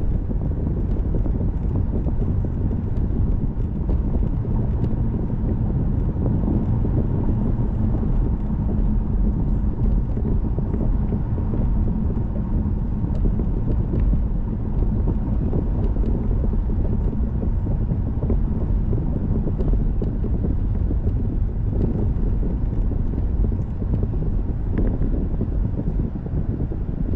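A car engine hums steadily from inside the cabin while driving.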